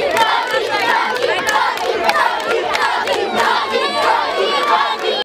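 Children clap their hands.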